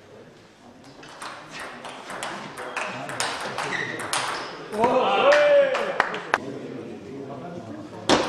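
A ping-pong ball clicks back and forth off paddles and a table in an echoing hall.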